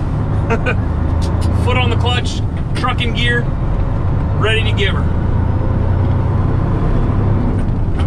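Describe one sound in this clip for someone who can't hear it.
A truck engine rumbles steadily inside the cab.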